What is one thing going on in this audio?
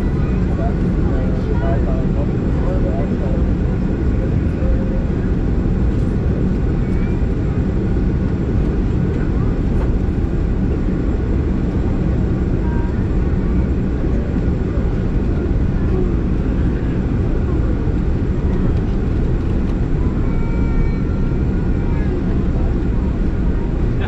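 A plane's wheels rumble over the runway.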